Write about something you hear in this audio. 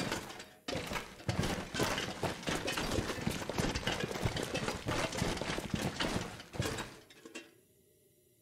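Footsteps thud along a hard tunnel floor.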